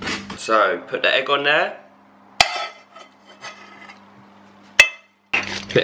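A spatula scrapes and knocks against a frying pan.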